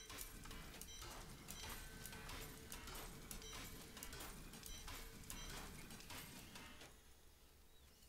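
Game effects clatter and click rapidly.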